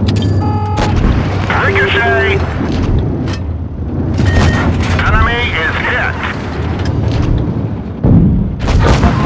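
A tank cannon fires with a sharp boom.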